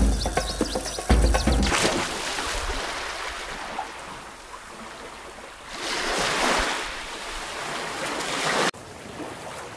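Sea waves splash against a small boat.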